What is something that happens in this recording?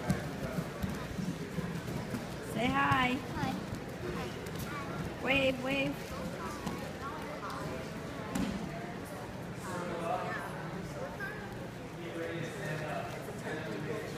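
Young children talk and chatter close by.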